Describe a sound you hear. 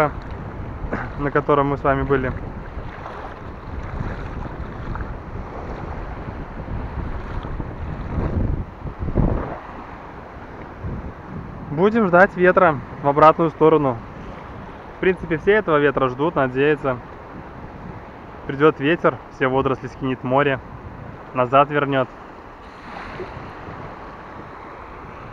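Small waves lap and splash close by.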